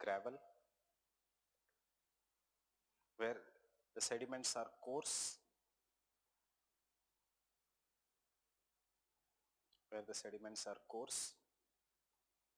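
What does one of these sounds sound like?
A man speaks calmly in short bursts, close to a microphone, with long pauses between.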